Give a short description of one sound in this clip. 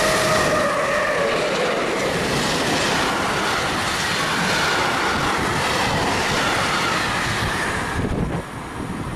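A freight train roars past close by with rattling wagons.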